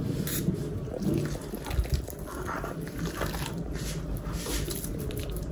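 Hands squish and knead a soft wet paste.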